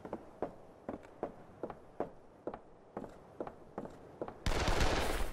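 Footsteps tread steadily on a wooden floor.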